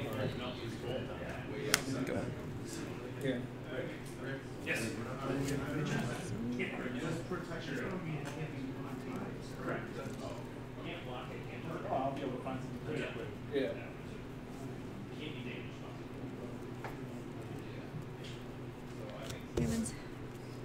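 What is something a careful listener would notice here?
Playing cards tap and slide softly on a tabletop.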